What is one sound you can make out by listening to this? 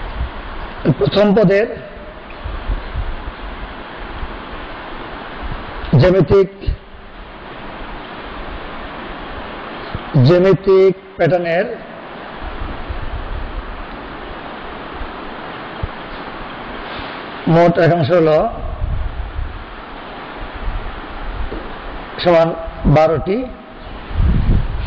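A man speaks in short phrases close by.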